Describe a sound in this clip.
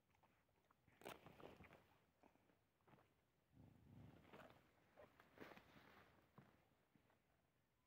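Dogs sniff and snuffle close by.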